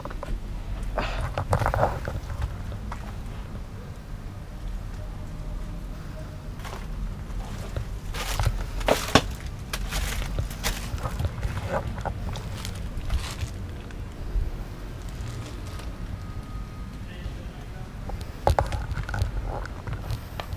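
Footsteps crunch on rubble.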